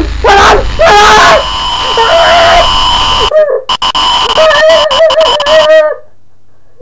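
Loud television static hisses and crackles.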